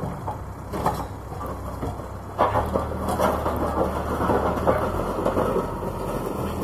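Rubble and debris crash and scrape as a loader bucket pushes them.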